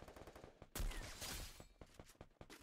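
A sniper rifle fires a loud shot that echoes.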